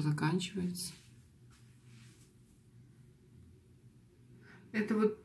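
A young woman speaks calmly and close by.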